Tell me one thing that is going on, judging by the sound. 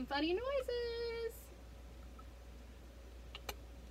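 Liquid trickles in a thin stream into a glass.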